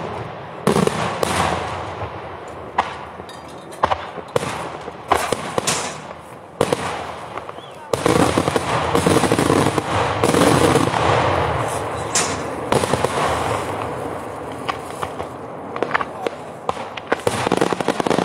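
Fireworks burst with loud bangs overhead, outdoors.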